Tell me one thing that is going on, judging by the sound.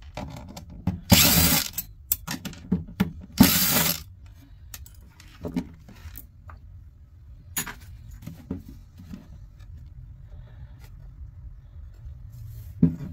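A metal box knocks and scrapes against a wooden surface as it is handled.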